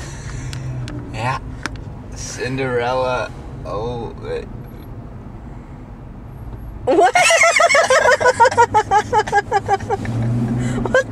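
A young man talks and laughs close by.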